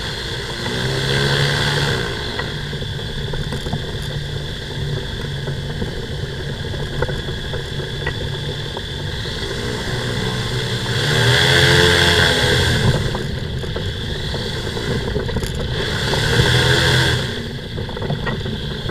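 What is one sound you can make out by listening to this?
A small aircraft engine runs steadily close by, swelling louder at times.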